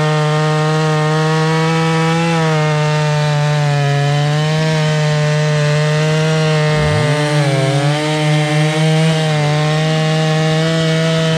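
A chainsaw engine runs loudly and steadily, its pitch dipping as it bites into the wood.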